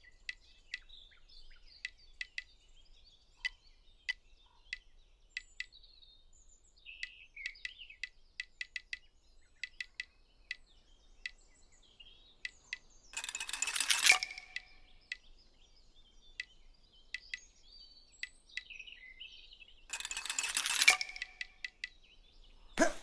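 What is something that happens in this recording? Menu clicks tick quickly one after another.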